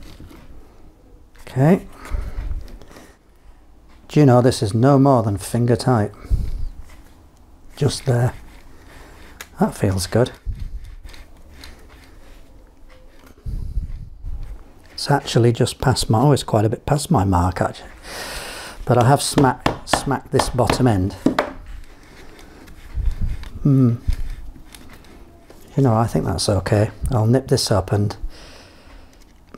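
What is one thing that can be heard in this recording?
Metal parts click and clink as hands fit them together.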